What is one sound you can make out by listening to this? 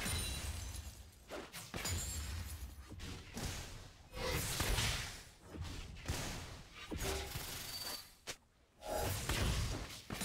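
Video game combat sound effects crackle and whoosh as characters fight.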